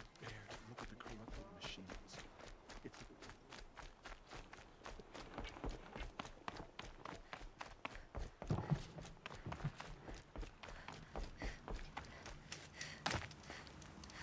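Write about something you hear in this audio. Footsteps run quickly over snow and dirt.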